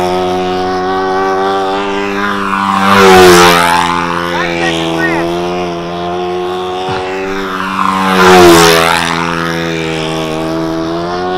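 A small model plane engine buzzes steadily, swelling and dropping in pitch each time the plane sweeps past.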